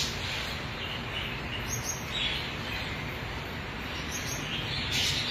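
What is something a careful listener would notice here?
Gouldian finches chirp.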